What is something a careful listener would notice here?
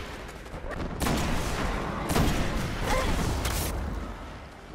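Energy blasts crackle and explode loudly.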